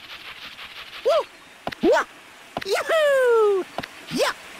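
Springy jump sounds rise and fall in pitch.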